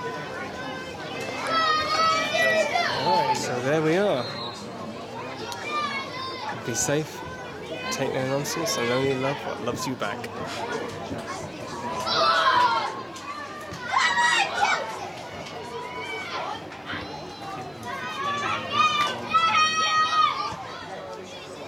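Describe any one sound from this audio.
Young adult players shout and call to each other across an open outdoor pitch.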